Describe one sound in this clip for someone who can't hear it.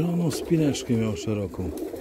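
A pigeon's wings flap briefly.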